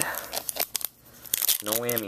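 Hands crinkle and rustle a foil card pack.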